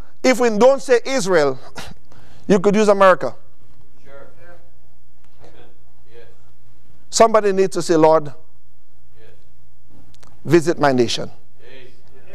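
A man preaches into a microphone in bursts of forceful, animated speech, with pauses between phrases.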